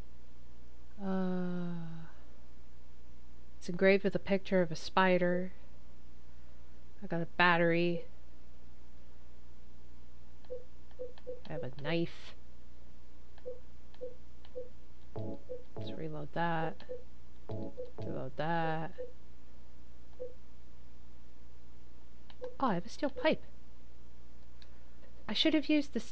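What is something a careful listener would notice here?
A young woman talks casually into a microphone, close by.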